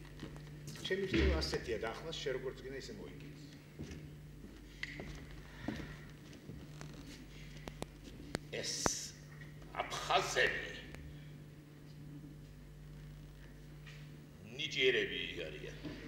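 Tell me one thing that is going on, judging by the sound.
A middle-aged man speaks with animation in a large hall.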